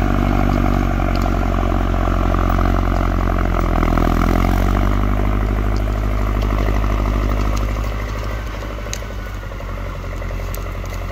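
A tractor engine rumbles loudly close by and gradually recedes.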